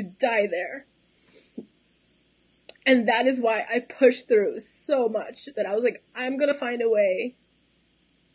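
A young woman speaks calmly and close up into a microphone.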